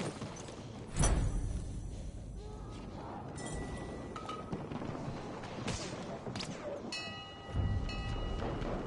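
Explosions boom close by, with debris raining down.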